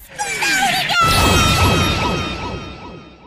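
A cartoon explosion bursts with a bang.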